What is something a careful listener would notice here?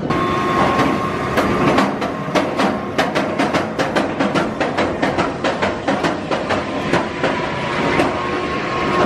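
A roller coaster train clatters along its track with rapid clicking.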